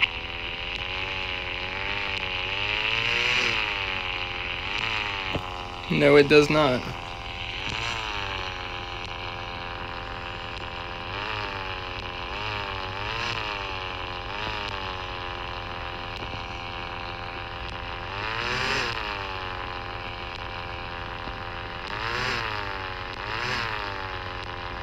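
A car engine hums steadily and revs up and down again and again.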